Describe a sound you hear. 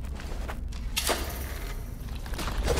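A magic blast whooshes as a game hero attacks.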